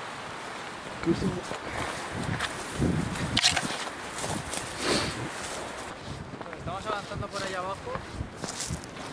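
Footsteps crunch through dry brush and grass.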